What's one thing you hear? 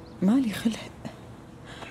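A young woman groans sleepily nearby.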